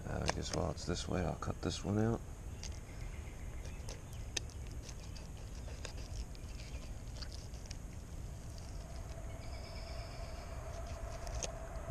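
A knife slices and scrapes through fish flesh on a board.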